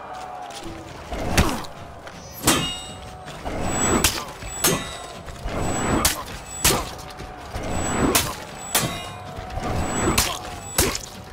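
Heavy swings whoosh through the air.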